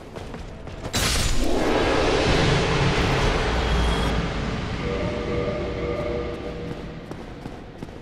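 A creature bursts apart with a loud, rushing whoosh that slowly fades.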